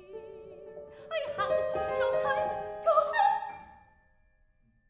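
A woman sings opera loudly in an echoing hall.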